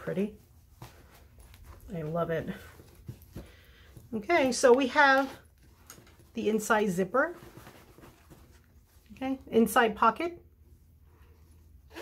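Fabric rustles softly as hands handle a cloth bag.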